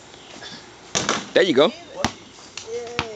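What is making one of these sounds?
A basketball bangs against a metal rim and backboard outdoors.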